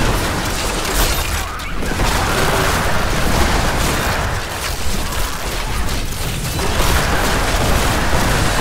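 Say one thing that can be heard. Game spells crackle and explode in a dense, noisy fight.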